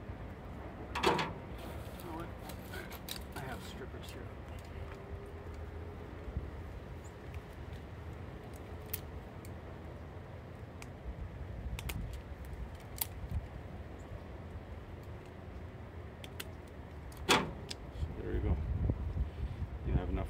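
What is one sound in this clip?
Small metal tools click and snip at wire close by.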